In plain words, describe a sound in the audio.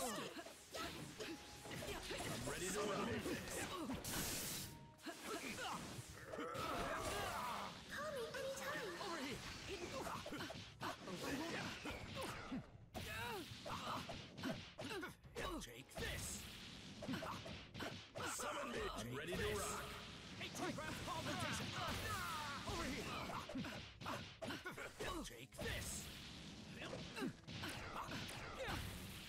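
Fighters' punches and kicks land with sharp thuds.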